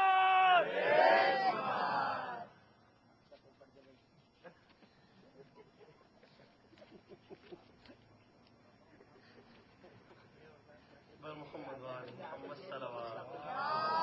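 A young man chants in a melodic voice through a microphone.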